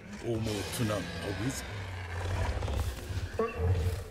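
A large beast crunches and gulps down a wooden barrel.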